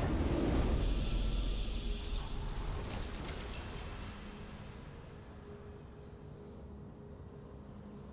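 A deep, triumphant game fanfare booms and slowly fades away.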